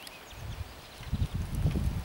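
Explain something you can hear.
A bicycle rolls past close by.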